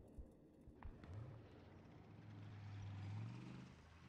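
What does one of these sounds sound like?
An armored vehicle's engine starts up and rumbles with a rising hum.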